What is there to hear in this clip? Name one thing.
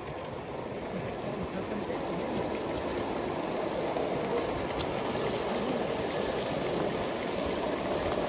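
A Gauge 1 model train rumbles along metal rails, growing louder as it approaches.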